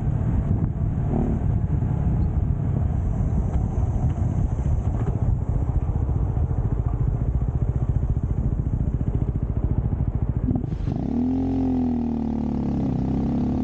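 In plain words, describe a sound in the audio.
A motorcycle engine rumbles and hums close by.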